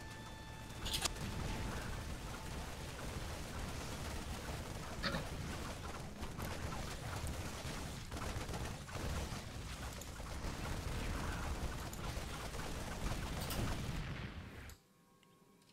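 Rapid gunfire crackles in a battle.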